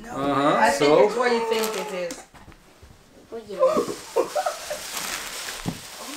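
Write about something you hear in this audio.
Paper rustles as a gift box is unwrapped.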